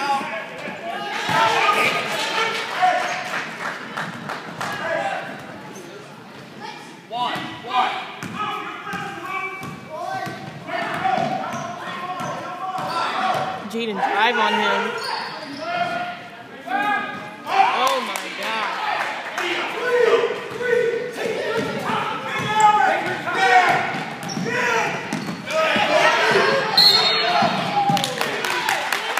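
Spectators talk and shout across the echoing gym.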